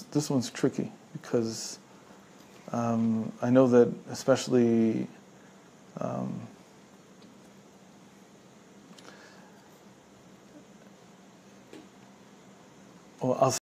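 A middle-aged man speaks calmly and closely into a clip-on microphone, with long pauses.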